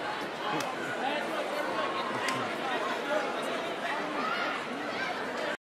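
A crowd chatters and cheers loudly in a large echoing gym.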